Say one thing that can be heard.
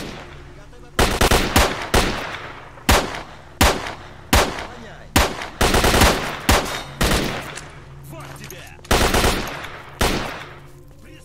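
Pistol shots crack in quick succession.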